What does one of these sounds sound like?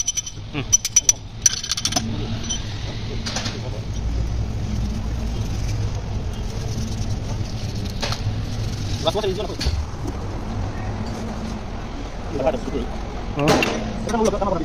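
Metal parts clink and knock against an engine block.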